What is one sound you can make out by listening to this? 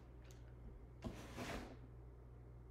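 Paper packaging rustles briefly.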